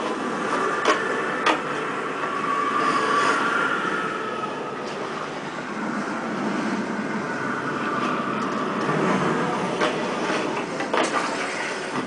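Hands knock sharply against a wooden pole, heard through a television speaker.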